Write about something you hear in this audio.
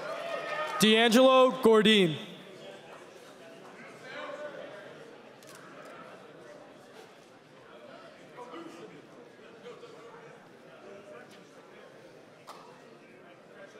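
A large crowd murmurs and chatters in the hall.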